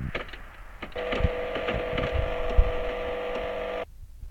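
A short tune plays as a level is completed.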